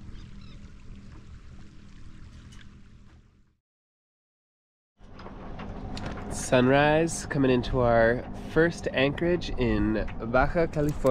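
Small waves lap and splash against a boat's hull.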